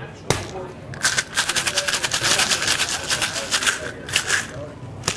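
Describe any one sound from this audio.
Ice rattles rapidly inside a cocktail shaker.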